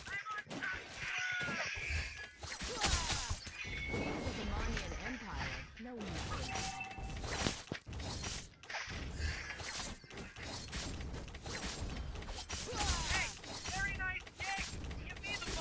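Magic blasts burst with loud whooshes.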